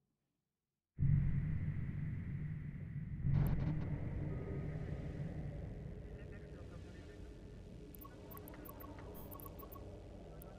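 A deep rumble swells as a spaceship launches through a tunnel.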